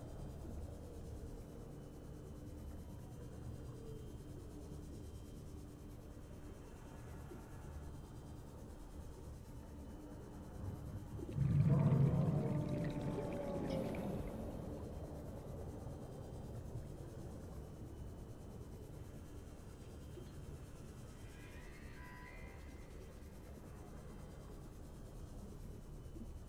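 A small submarine's engine hums steadily underwater.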